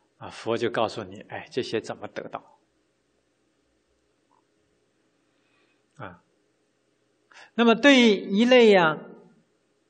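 A middle-aged man speaks calmly and warmly into a microphone, with pauses.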